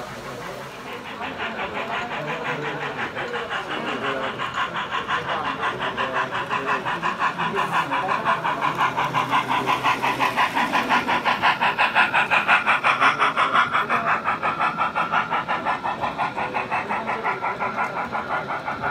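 Model train wheels click quickly and evenly over the rails, growing louder as the train draws near.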